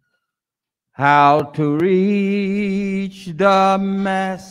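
An elderly man sings slowly through a microphone.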